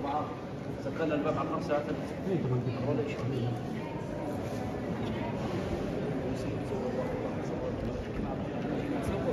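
A crowd of people murmurs and talks quietly in a large echoing hall.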